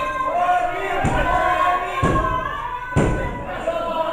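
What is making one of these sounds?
Bodies slam heavily onto a wrestling ring's mat.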